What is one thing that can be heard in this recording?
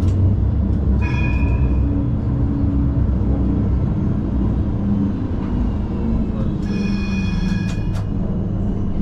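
Steel wheels squeal briefly on the tram rails.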